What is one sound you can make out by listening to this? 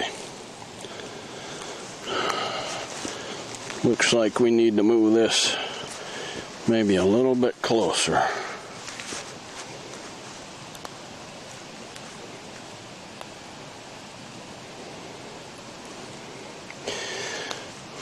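A campfire crackles softly outdoors.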